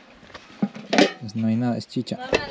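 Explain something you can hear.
A metal pot lid clanks as it is lifted.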